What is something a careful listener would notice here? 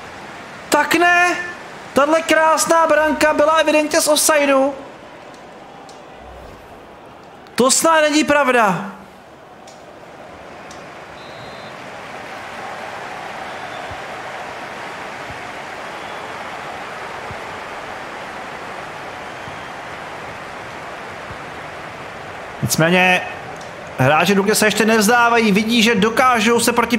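A large stadium crowd roars steadily in the distance.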